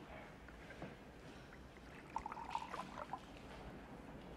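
Water pours from a glass carafe into a glass.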